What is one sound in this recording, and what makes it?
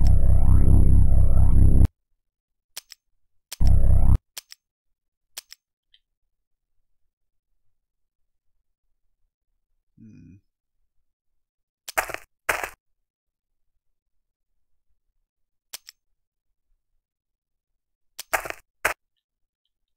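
Short game sound effects play in brief bursts with silence between them.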